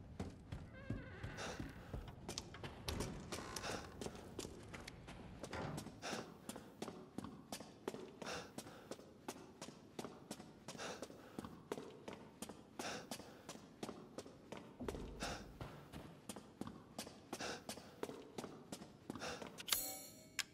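Footsteps thud steadily across a wooden floor.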